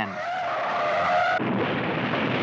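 A car engine roars as cars speed along a road.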